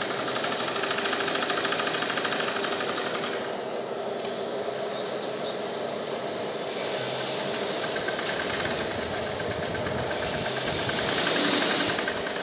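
Several sewing machines whir and rattle steadily.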